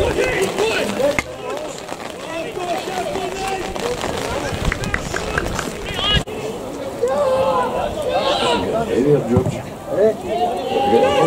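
Young men shout and cheer nearby outdoors.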